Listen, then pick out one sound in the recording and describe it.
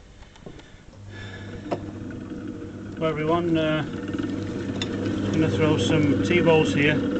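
A potter's wheel whirs steadily.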